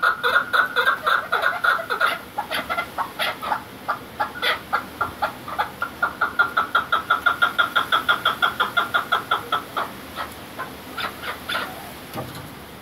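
Partridges call in rapid, repeated chattering clucks close by.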